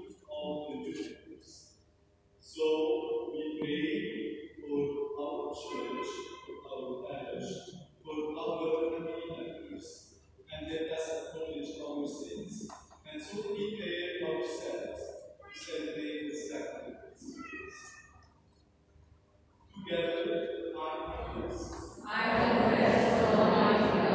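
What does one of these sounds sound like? A congregation speaks together in unison in a large echoing hall.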